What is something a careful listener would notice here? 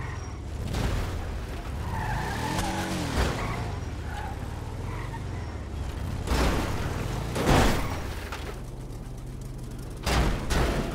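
A car engine rumbles and revs.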